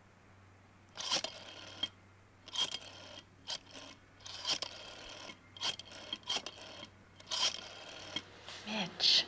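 A telephone dial clicks as a man dials.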